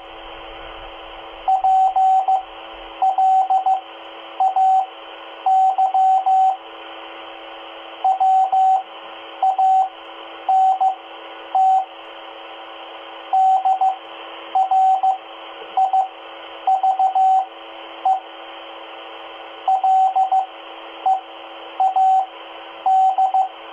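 A two-way radio hisses with steady static.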